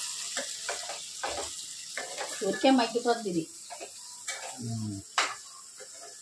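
A metal spatula scrapes and stirs food in a pan.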